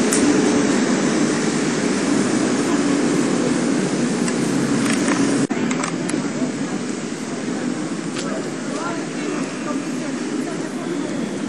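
Car engines hum and idle in steady town traffic outdoors.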